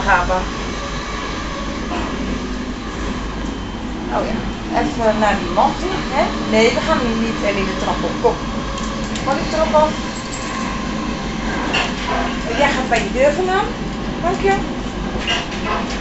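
A train rumbles steadily along.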